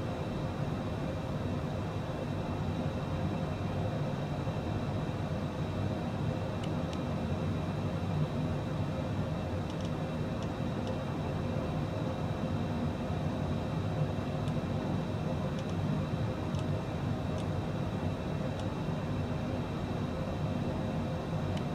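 A jet engine hums steadily in a cockpit.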